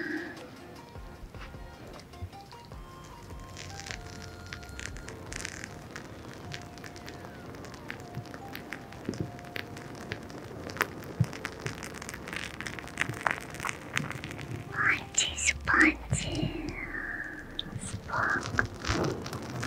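Fingers rub and scratch on a microphone's soft covers, crackling close to the ear.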